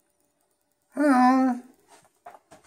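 A young woman lets out a long, wavering wail up close.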